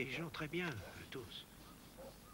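A man speaks quietly and closely.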